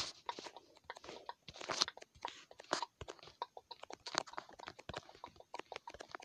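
Wooden blocks knock softly as they are set in place.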